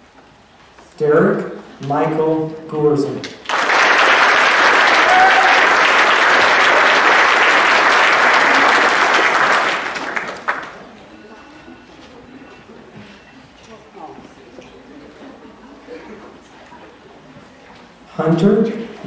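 A man announces calmly over a loudspeaker in a large echoing hall.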